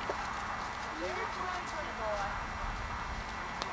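A young girl talks quietly at a distance.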